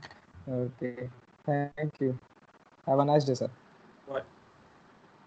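A young man speaks cheerfully over an online call.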